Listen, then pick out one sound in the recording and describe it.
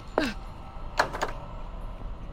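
A locked door rattles briefly.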